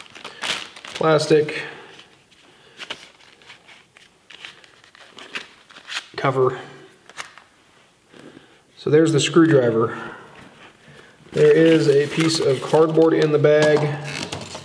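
A power drill clicks and knocks as it is handled.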